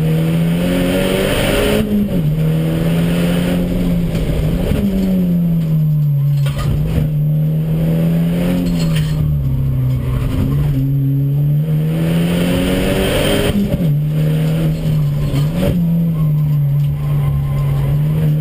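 Tyres hum on the track surface.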